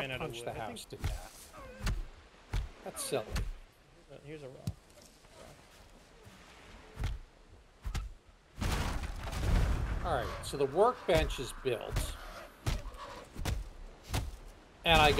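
A tree is chopped with repeated dull thuds.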